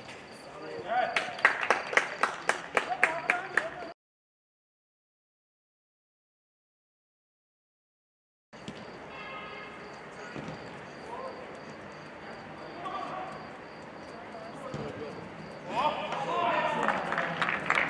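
Young men shout and cheer across a football pitch.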